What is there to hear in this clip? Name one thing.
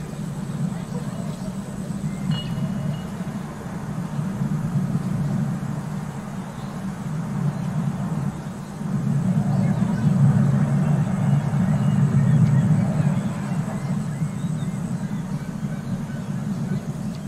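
A glass bowl rolls with a steady low rumble over hard ground.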